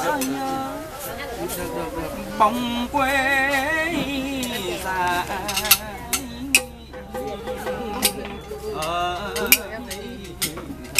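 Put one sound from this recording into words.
A two-stringed fiddle plays a wavering bowed melody.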